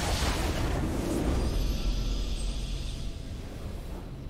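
A triumphant game fanfare swells loudly.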